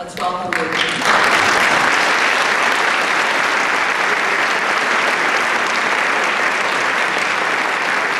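An audience applauds loudly and steadily.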